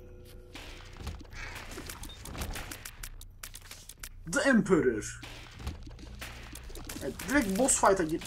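Game sound effects pop and splat as shots are fired.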